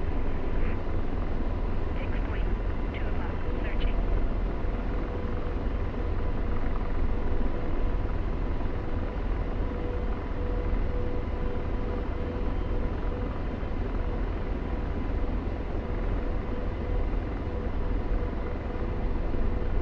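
A helicopter's engine and rotor drone loudly and steadily from inside the cockpit.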